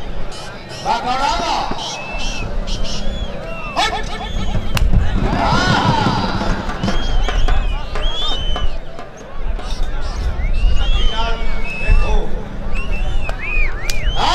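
A large outdoor crowd shouts and cheers.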